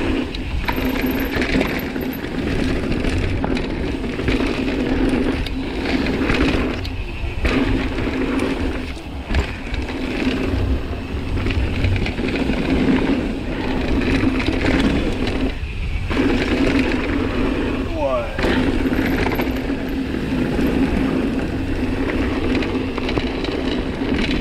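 Bicycle tyres crunch and rumble over dirt and gravel.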